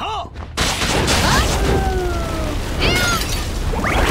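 Fiery explosions burst and roar.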